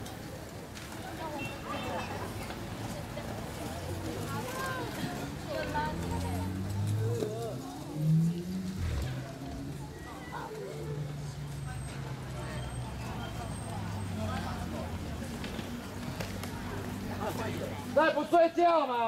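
Inline skate wheels roll and rumble on pavement.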